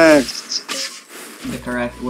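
A magical strike bursts with a sharp crackle.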